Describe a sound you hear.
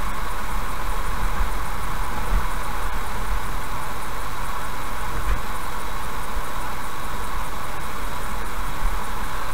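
A car drives steadily along a road, with tyres humming on asphalt.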